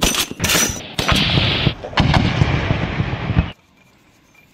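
Shells explode with deep booming blasts in the distance.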